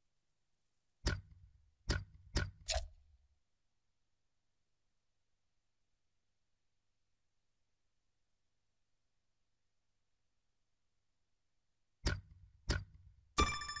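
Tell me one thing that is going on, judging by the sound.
Short electronic menu clicks sound several times.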